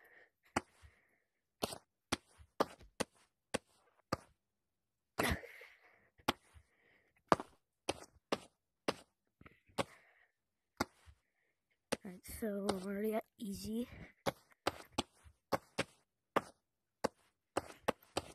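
Hands grab and slap against a pole with sharp clicks.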